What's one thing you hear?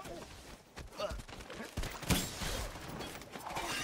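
A gun fires a few sharp shots.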